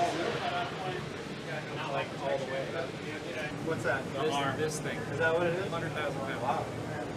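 Several men talk with animation at close range.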